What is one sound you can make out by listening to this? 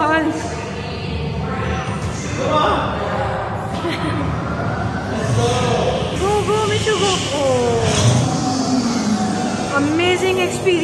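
People chatter in a large echoing hall.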